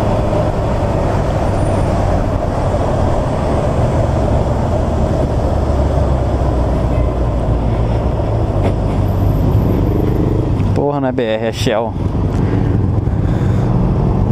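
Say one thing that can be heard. A motorcycle engine drones steadily.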